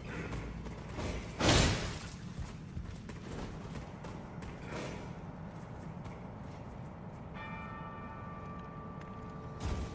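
Footsteps climb a wooden ladder.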